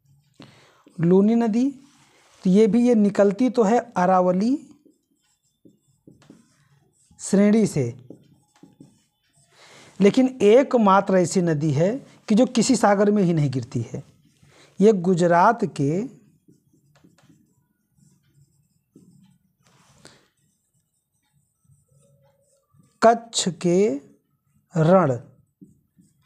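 A man speaks calmly and clearly at close range, in short bursts with pauses.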